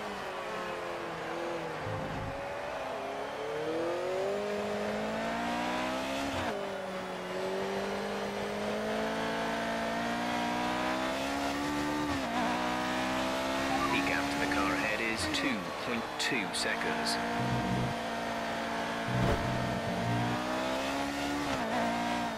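A racing car engine roars, rising in pitch and dropping sharply with each gear change.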